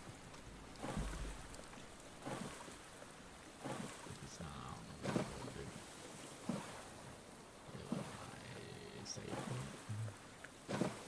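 Water splashes with each swimming stroke, in a slow, even rhythm.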